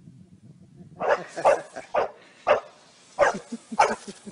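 A dog bounces on a trampoline with soft, springy thumps.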